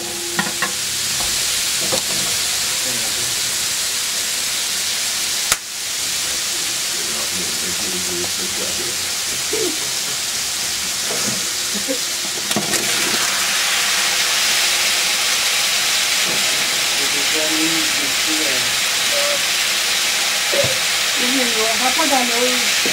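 Food sizzles and crackles in a hot pot.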